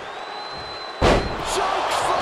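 A heavy thud sounds as a wrestler slams onto the ring mat.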